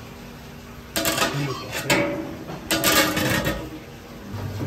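A metal lid clanks and scrapes onto a pot.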